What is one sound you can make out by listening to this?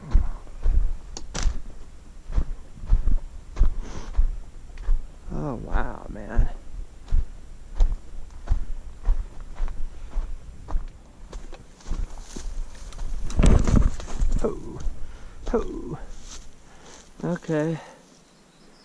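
Footsteps crunch on dry gravel and twigs.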